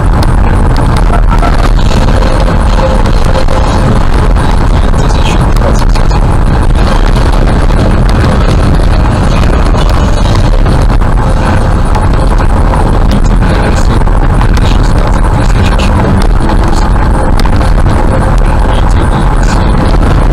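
Gravel rattles and crunches under the tyres.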